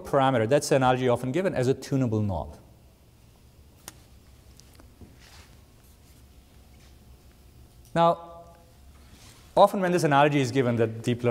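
A man lectures calmly through a microphone, pausing between phrases.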